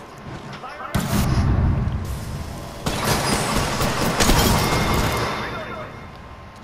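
A loud explosion bursts and roars, then slowly dies away.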